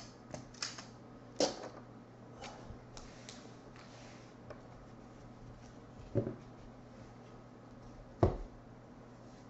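Plastic card cases clack and rattle as hands handle them.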